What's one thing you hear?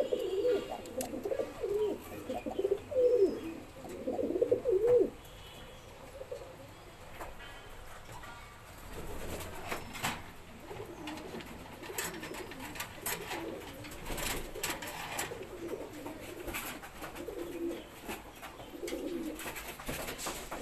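Pigeons coo with low, throaty calls.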